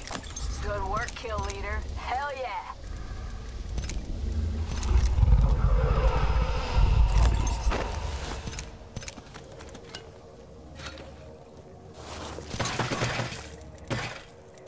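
Short clicks sound as menu items are selected.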